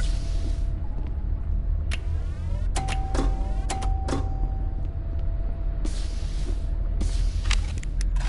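Menu buttons click with short electronic taps.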